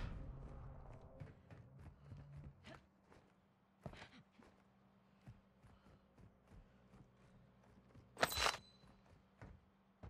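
Quick footsteps run on a hard surface.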